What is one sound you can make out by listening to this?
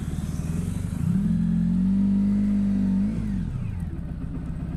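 A motorcycle engine revs up and settles as it pulls away.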